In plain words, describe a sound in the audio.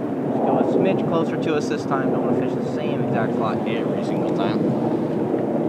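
A young man talks calmly nearby.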